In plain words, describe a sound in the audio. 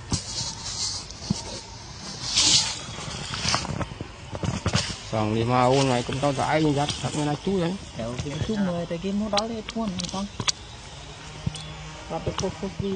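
Dry leaves rustle softly under sitting monkeys.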